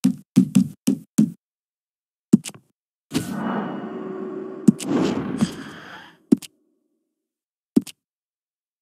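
Short interface clicks tick sharply several times.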